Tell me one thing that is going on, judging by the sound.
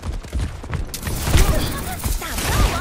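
A video game weapon fires a hissing freezing spray.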